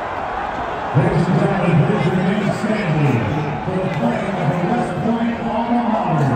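A crowd of young men sings together loudly nearby.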